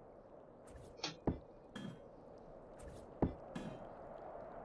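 Wooden pieces knock and clunk as they are taken down.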